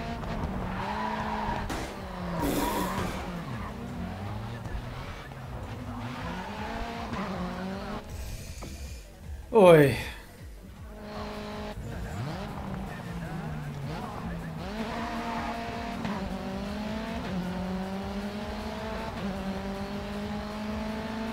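A racing car engine roars and changes pitch as it shifts gears.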